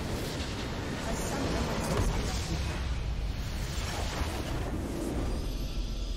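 A video game structure bursts apart with a booming blast.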